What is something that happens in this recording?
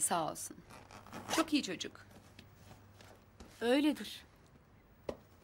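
A young woman answers nearby.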